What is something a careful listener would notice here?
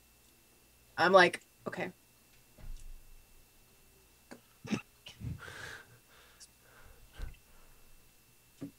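A woman talks and laughs over an online call.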